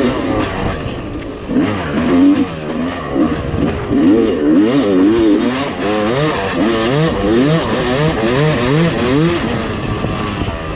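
A motorcycle engine revs up and down close by.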